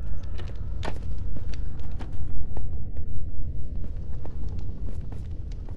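A pickaxe taps repeatedly against stone in a video game.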